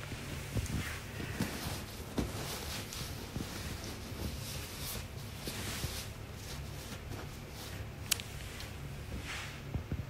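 A bedsheet rustles as it is pulled and tucked.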